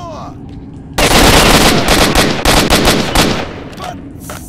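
An assault rifle fires.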